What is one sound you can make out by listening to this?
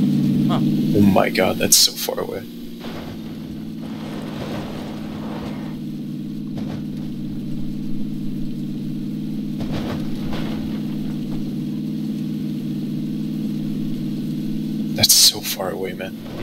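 A car thuds and bumps over uneven terrain.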